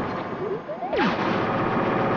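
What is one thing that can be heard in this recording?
A video game character falls with a descending whistle.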